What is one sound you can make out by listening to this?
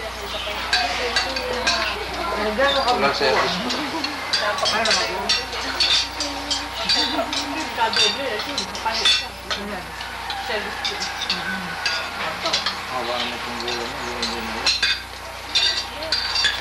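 Several people talk and chatter close by.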